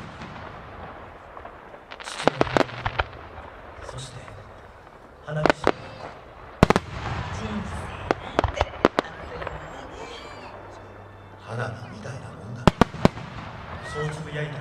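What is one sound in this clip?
Fireworks crackle and fizz.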